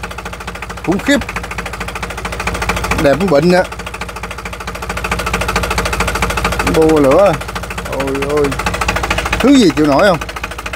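A diesel engine idles with a steady, rapid clatter.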